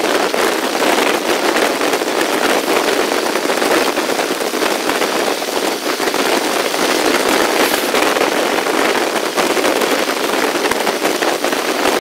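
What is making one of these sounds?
A train rattles and clatters steadily along the tracks.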